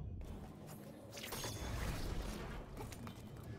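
A magic blast crackles and bursts with a loud whoosh.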